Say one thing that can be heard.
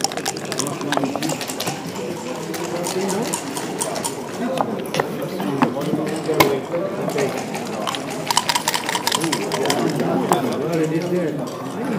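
Dice rattle and tumble across a wooden board.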